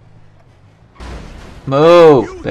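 A car crashes into another car.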